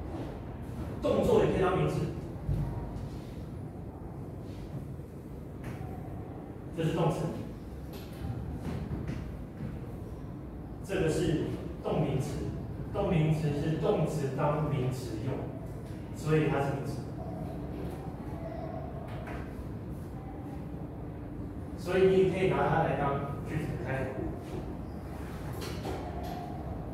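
A man lectures in a room with some echo, heard from a distance.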